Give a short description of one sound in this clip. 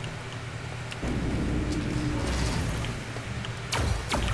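A heavy metal door slides open with a low mechanical rumble.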